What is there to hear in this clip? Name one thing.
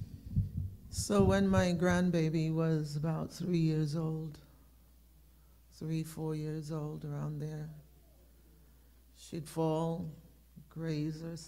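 A middle-aged woman sings slowly into a microphone, heard over an online call.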